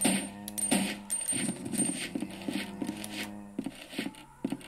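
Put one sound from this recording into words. Tense game music with low held tones plays from a small phone speaker.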